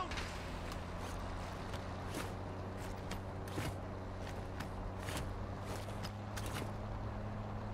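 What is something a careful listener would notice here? Footsteps thud on a hollow wooden floor.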